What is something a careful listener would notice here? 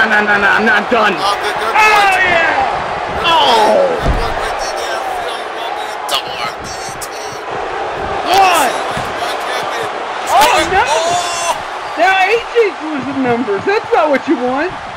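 A crowd cheers and roars throughout.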